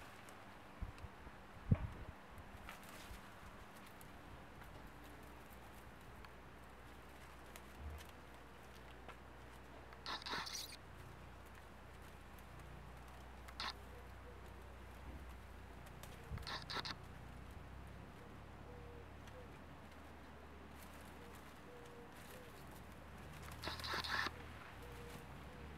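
Kittens rustle through leaves and plants as they play.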